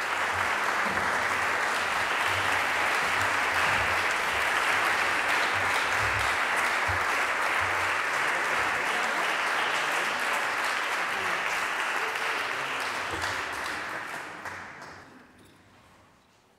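A pipe organ plays loudly, echoing through a large hall, then dies away.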